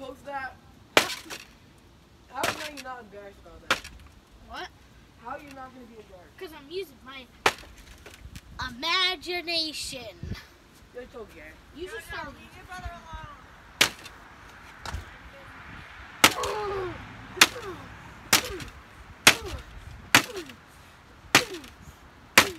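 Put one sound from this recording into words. A hammer knocks hard against wood.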